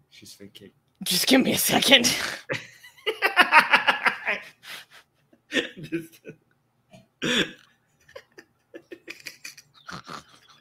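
A young man laughs loudly over an online call.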